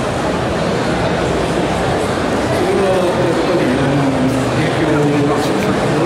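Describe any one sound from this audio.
A second man answers through a microphone over loudspeakers.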